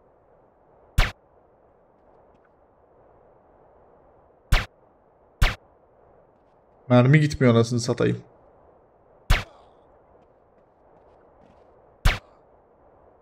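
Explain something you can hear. Gunshots ring out one at a time.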